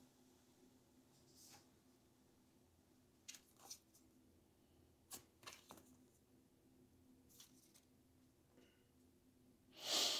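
Cards tap softly onto a table.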